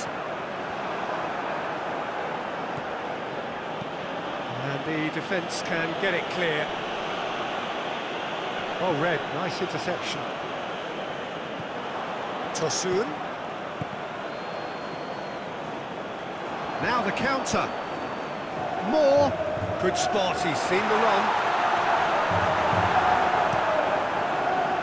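A large stadium crowd murmurs and cheers steadily, swelling near the end.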